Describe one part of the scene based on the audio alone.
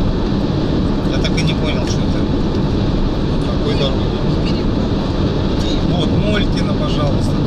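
A man talks inside the car.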